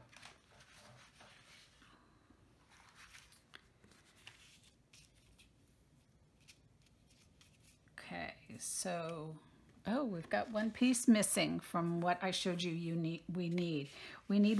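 Paper rustles and slides as cards are handled.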